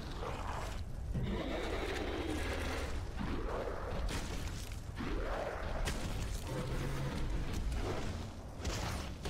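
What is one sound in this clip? A monster growls and roars deeply.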